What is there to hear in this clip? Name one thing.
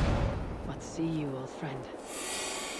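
A raven caws harshly.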